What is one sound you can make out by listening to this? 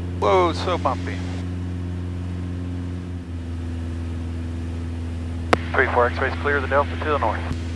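A man speaks through an aviation headset microphone.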